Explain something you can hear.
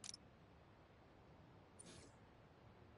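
A soft menu click sounds.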